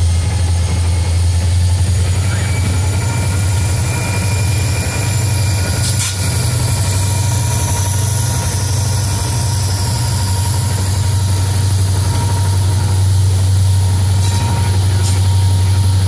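Diesel locomotive engines rumble loudly and steadily close by.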